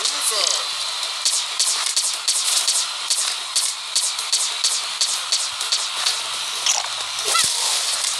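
Cartoonish blaster shots fire in quick, repeated bursts.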